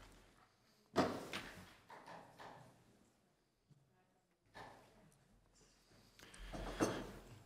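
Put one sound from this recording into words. A man speaks at a distance in a large echoing hall.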